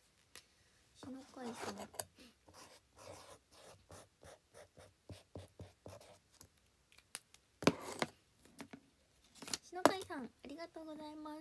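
Fabric rustles and taps against a microphone.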